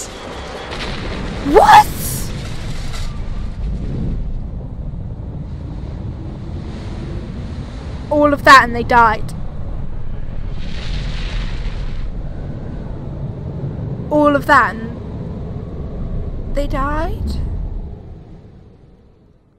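Strong wind roars and whirls with a deep rumble, then dies away.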